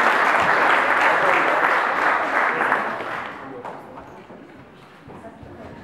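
Children's shoes shuffle and tap on a wooden stage.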